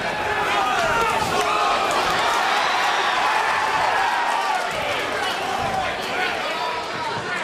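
Gloved punches land with dull thuds.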